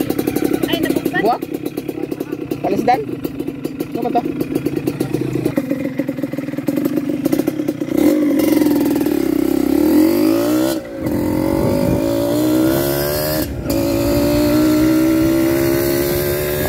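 A motorcycle engine hums steadily, its pitch rising and falling as it rides.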